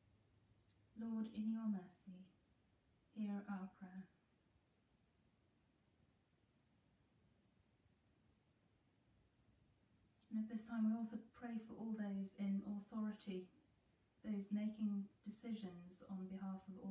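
A woman speaks calmly and slowly into a nearby microphone, with long pauses.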